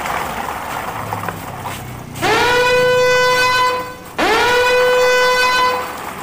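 Plastic toy trucks roll and rattle over brick paving.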